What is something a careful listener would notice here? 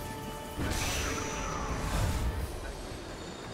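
A magic beam zaps and crackles.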